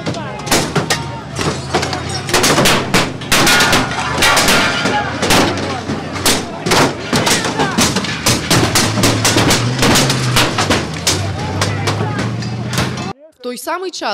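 Sticks bang hard and repeatedly on a truck's metal body.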